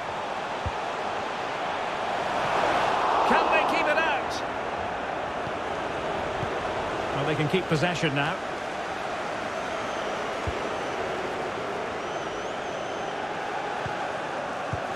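A large stadium crowd roars steadily, swelling louder for a moment.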